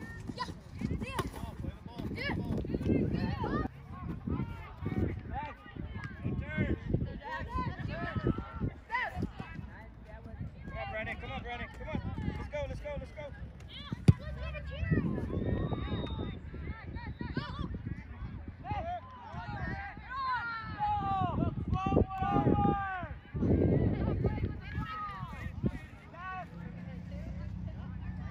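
Young players and adults shout and call out outdoors.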